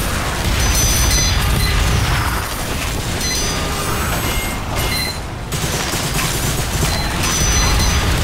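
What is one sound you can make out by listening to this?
Gunshots and explosions from a video game crack and boom repeatedly.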